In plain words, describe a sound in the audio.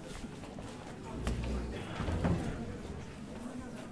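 A man speaks aloud on a stage in a hall with some echo.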